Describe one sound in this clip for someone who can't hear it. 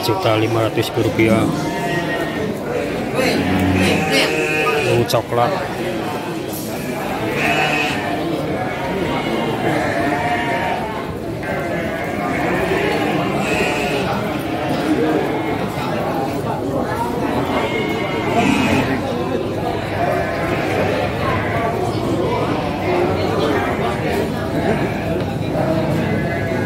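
Sheep bleat nearby.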